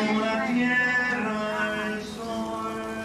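An elderly woman sings nearby.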